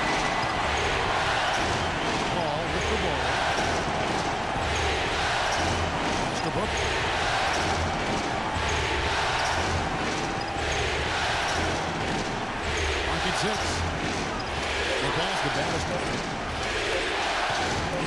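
Basketball sneakers squeak on a hardwood floor.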